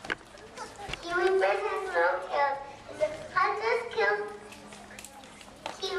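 A young girl speaks into a microphone through a loudspeaker.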